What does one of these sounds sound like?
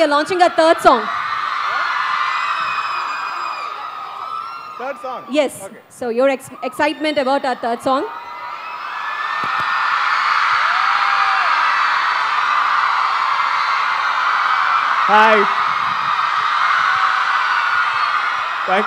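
A large crowd cheers and screams loudly.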